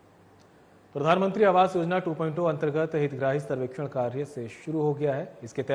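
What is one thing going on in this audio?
A young man reads out steadily and clearly into a close microphone.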